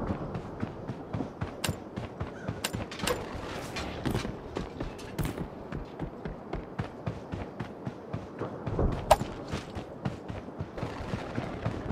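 Quick footsteps run over grass and hard ground.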